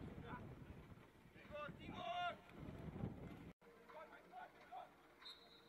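Young men shout to each other in the distance outdoors.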